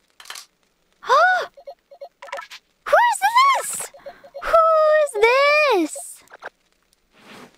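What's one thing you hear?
A young woman talks with playful animation into a close microphone, her voice rising and falling in pitch.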